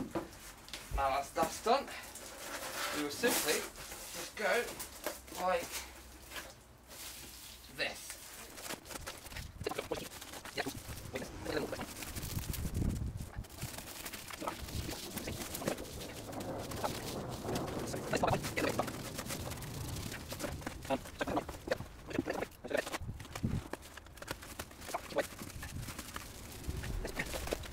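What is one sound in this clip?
Foil insulation crinkles and rustles as it is handled.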